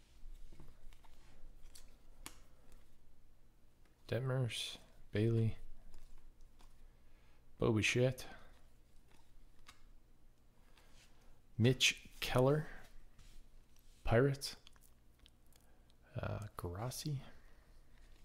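Trading cards rustle and slide against each other as they are flipped through.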